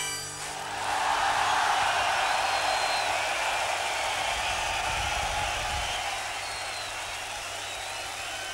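A huge outdoor crowd cheers and roars.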